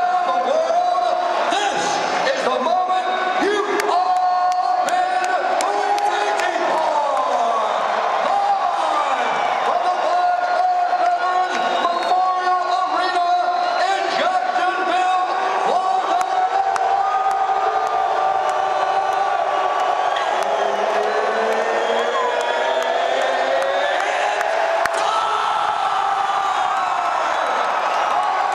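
A large crowd cheers and roars in a huge echoing arena.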